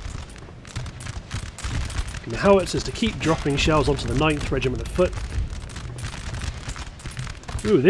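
Musket volleys crackle in rapid bursts.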